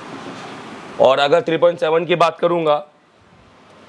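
A man speaks clearly into a microphone, explaining.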